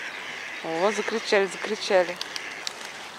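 A duck quacks loudly nearby.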